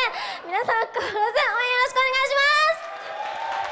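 A young woman speaks excitedly into a microphone, her voice rising in pitch.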